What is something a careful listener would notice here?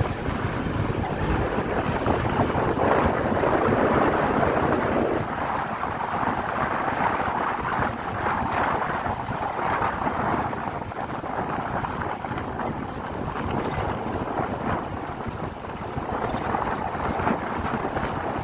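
Tyres rumble and crunch over a rough dirt road.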